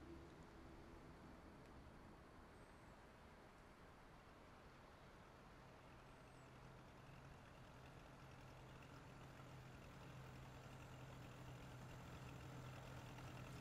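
Water flows gently along a river.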